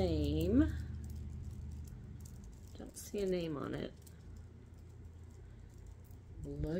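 Glass beads clink softly against each other.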